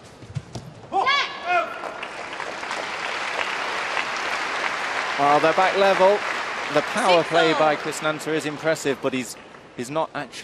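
A large crowd cheers and applauds in an echoing hall.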